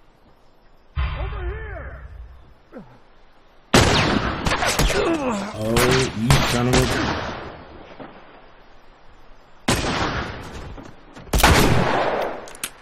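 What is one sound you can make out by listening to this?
A rifle fires with a loud crack.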